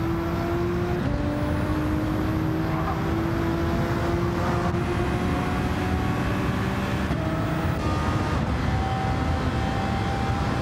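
Another racing car engine drones nearby.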